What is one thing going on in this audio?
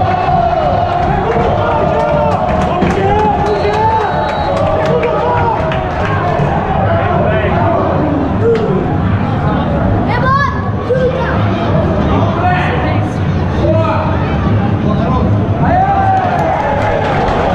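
A large crowd of men sings and chants loudly in an open stadium.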